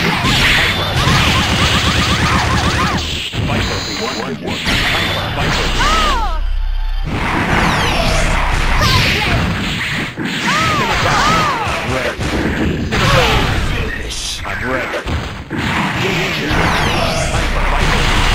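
Energy beams roar and crackle.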